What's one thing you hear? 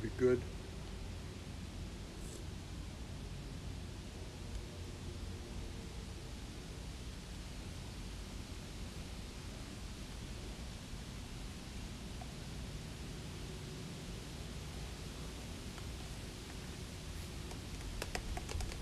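A spoon scrapes inside a plastic cup.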